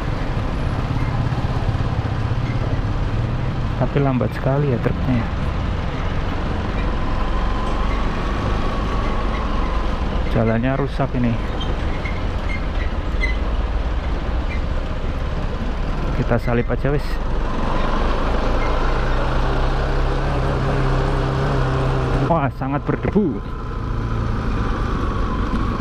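A motorcycle engine hums steadily up close.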